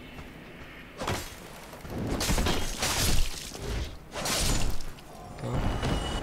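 Sword blows strike a body.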